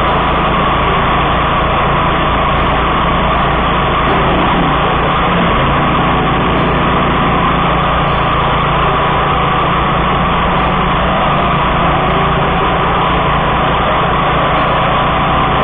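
A mower engine roars steadily up close.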